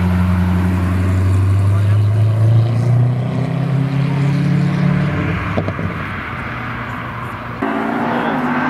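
A sports car engine rumbles deeply.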